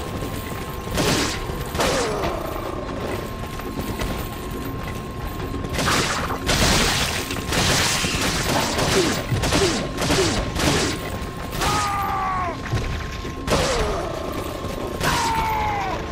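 Gunshots ring out one after another.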